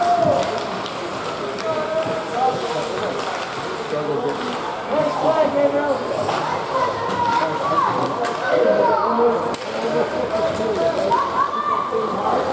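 Skates scrape and glide across ice.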